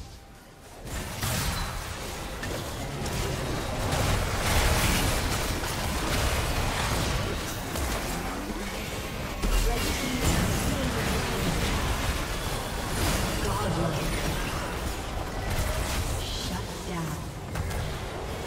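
Game spell effects whoosh and crackle in a fast battle.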